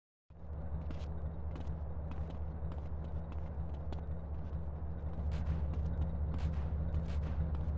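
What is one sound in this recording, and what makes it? Footsteps tap on pavement.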